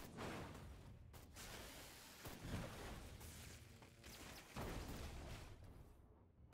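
Explosions boom and crackle loudly.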